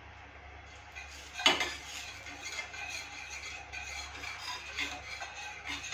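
Oil sizzles in a pan.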